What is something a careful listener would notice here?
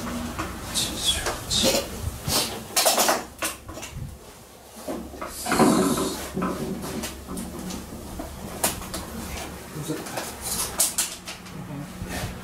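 A man fiddles with small parts, making soft clicks and rustles.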